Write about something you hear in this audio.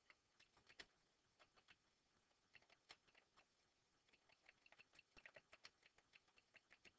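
Keys click rapidly on a computer keyboard.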